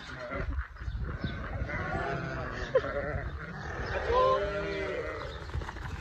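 Hooves patter on dry ground as a flock of sheep runs.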